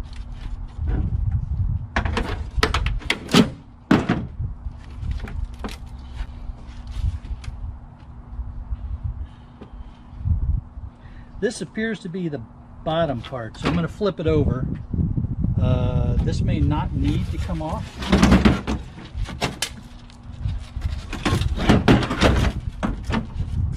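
Metal scrap clanks and scrapes as it is pulled loose.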